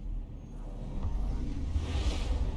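A rushing whoosh swells at the end.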